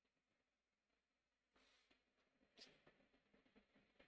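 A marker cap clicks off.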